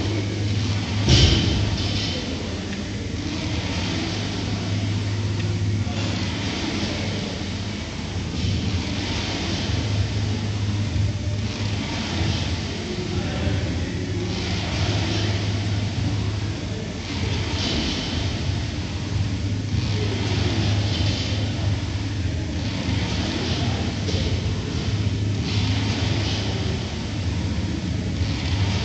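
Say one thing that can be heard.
A rowing machine's flywheel whirs in rhythmic surges with each stroke.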